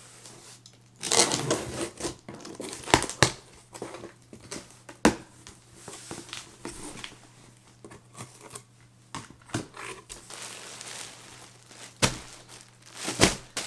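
Cardboard rustles and scrapes as a box is opened by hand.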